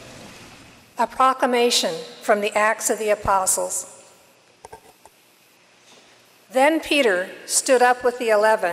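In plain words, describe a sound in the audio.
An older woman speaks calmly into a microphone, heard through a loudspeaker in an echoing hall.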